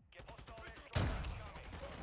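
A rifle fires a loud, sharp shot that echoes briefly.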